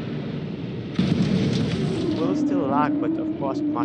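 Vehicles collide with a loud metallic crash.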